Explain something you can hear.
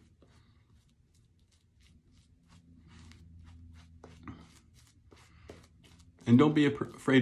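A shaving brush swishes and scrubs against stubbly skin.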